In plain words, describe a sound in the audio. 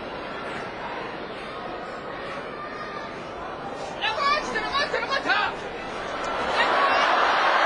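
A large indoor crowd murmurs.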